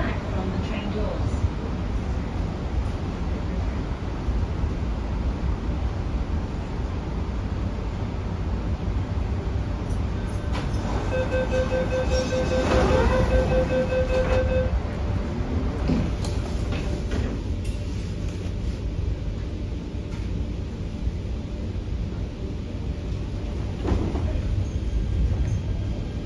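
A train's low rumble hums steadily throughout.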